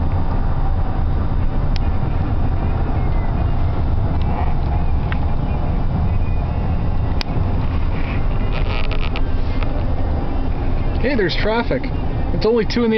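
A vehicle's engine and tyres rumble steadily at highway speed.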